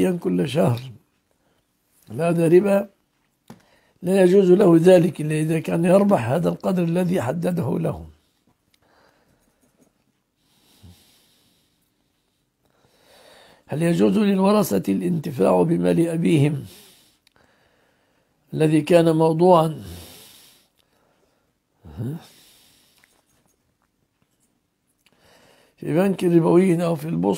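An elderly man speaks calmly into a close microphone, in phrases with pauses.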